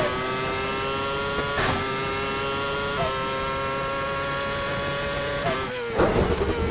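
A racing car engine screams at high revs, shifting up through the gears.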